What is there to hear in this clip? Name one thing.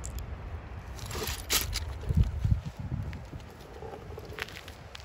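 Footsteps crunch on loose shells.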